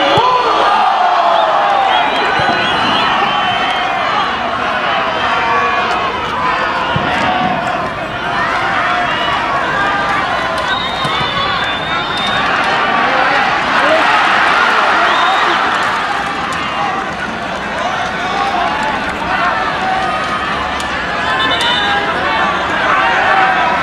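A large crowd of spectators chatters and cheers loudly outdoors.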